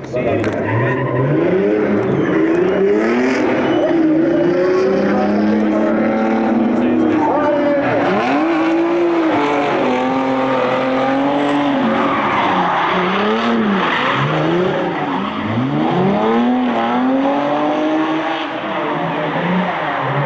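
Two car engines roar and rev up and down loudly.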